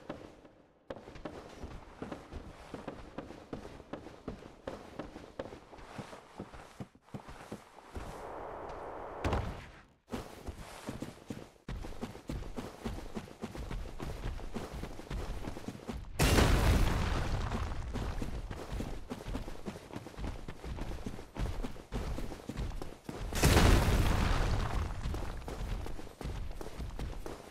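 Armoured footsteps clank and thud quickly.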